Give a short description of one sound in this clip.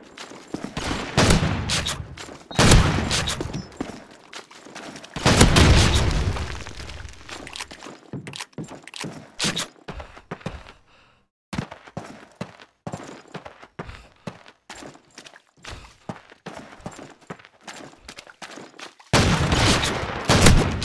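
A pump-action shotgun fires in loud, booming blasts.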